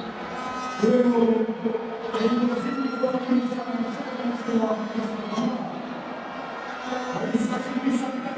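A crowd cheers and chants across a large open stadium.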